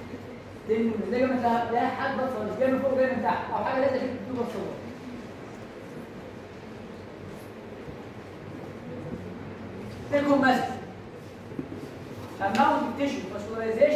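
A man lectures calmly in an echoing room, with pauses.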